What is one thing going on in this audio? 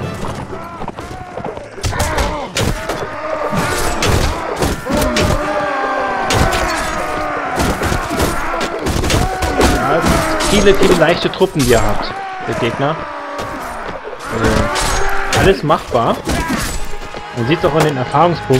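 Weapons clash and strike in a battle.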